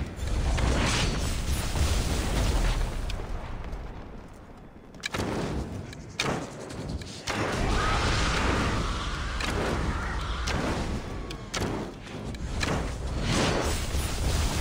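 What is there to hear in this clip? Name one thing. A loud blast booms and crackles.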